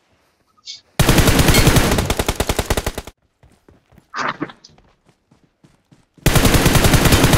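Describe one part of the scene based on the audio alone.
Rapid gunfire rattles in close, loud bursts.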